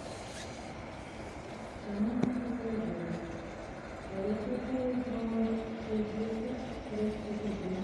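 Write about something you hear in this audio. A long rail vehicle rolls along the track with wheels clattering on the rails.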